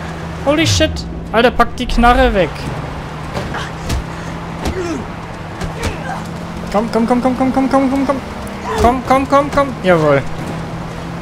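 Men shout loudly and angrily.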